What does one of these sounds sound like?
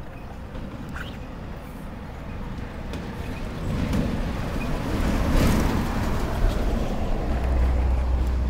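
Wind rumbles and buffets outdoors, growing stronger.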